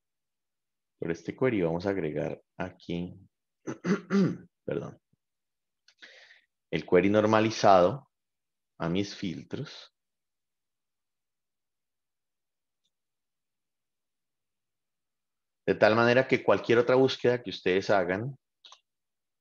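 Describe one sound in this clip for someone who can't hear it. A man speaks calmly through an online call microphone, pausing now and then.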